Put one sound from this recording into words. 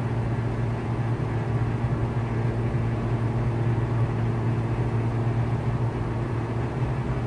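A light aircraft engine drones steadily inside the cockpit.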